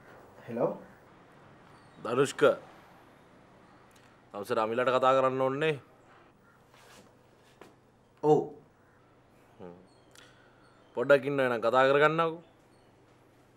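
A man talks on a phone, speaking loudly and with animation.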